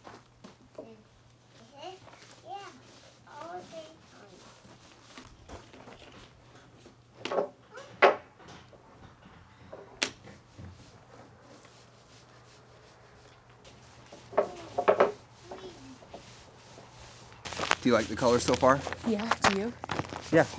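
A brush rubs stain onto wooden boards.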